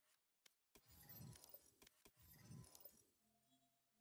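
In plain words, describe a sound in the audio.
A young woman talks quietly into a microphone.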